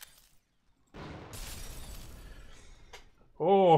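Something shatters like breaking glass.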